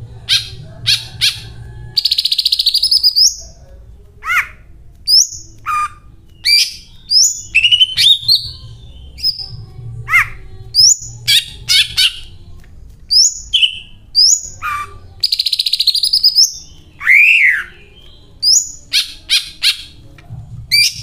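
A caged bird sings loud, varied whistles and chirps close by.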